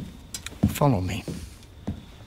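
A man speaks briefly in a low, calm voice.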